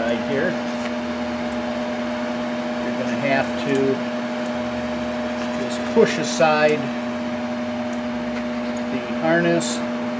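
A ratchet wrench clicks as a bolt is turned.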